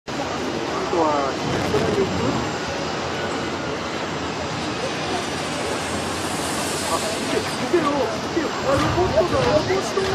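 A jet airliner roars loudly as it comes in low.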